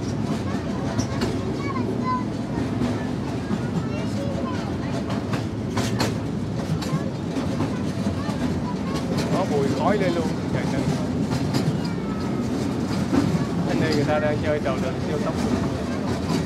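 Young girls and women chatter nearby.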